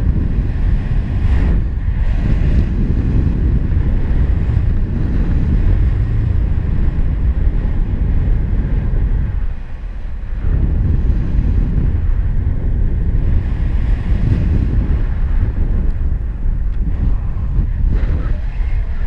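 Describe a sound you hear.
Strong wind rushes and buffets loudly past, low and rumbling.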